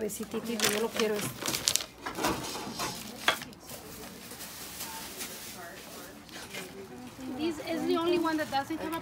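A middle-aged woman talks casually nearby.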